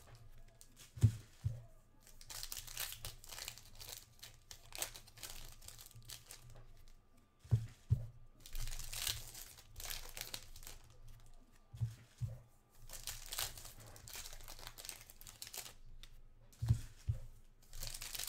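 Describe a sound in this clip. Objects tap down onto a table with soft knocks.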